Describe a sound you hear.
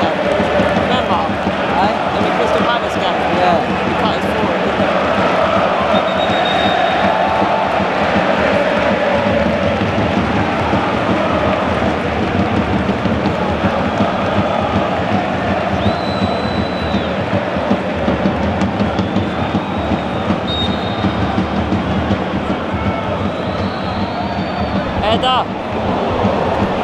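A huge stadium crowd roars and chants steadily, echoing around the stands.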